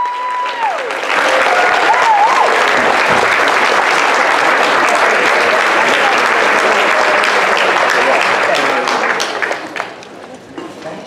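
An audience cheers and applauds loudly in a large hall.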